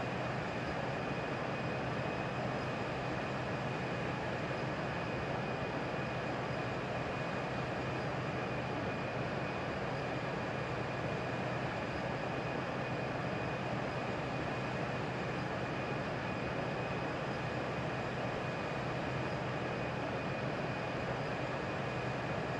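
Jet engines roar steadily in a cockpit during flight.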